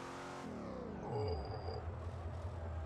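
A car crashes into a barrier with a metallic crunch.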